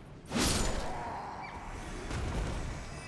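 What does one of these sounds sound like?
A magical whoosh rings out and fades with a shimmer.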